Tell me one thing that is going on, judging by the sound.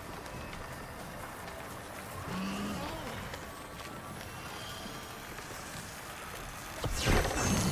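Magical spell effects crackle and whoosh.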